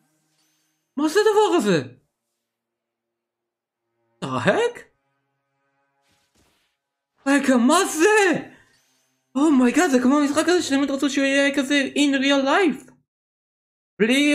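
A young man talks with animation into a close microphone, in bursts with pauses.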